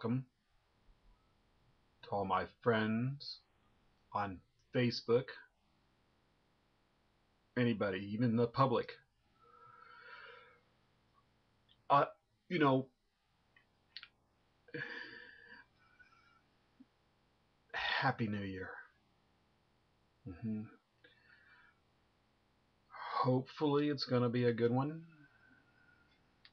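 A middle-aged man speaks close to a microphone in short, animated bursts.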